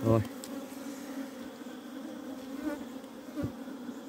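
A hand breaks off a piece of honeycomb with a soft tearing sound.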